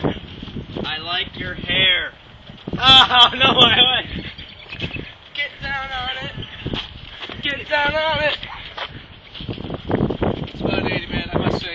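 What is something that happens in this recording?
Young men shout and talk excitedly close by, outdoors.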